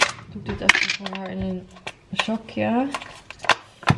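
A plastic tub lid clicks and rattles in a young woman's hands.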